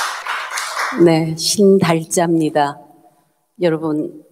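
An elderly woman speaks calmly into a microphone.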